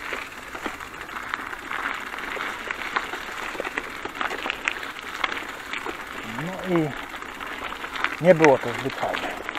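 Bicycle tyres crunch and rattle over a rough gravel track.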